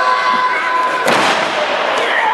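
A wrestler slams onto the ring mat with a loud thud.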